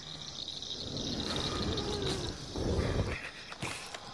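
Torches burn with a low roar and crackle.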